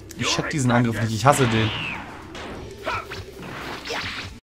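An energy aura crackles and hums while powering up.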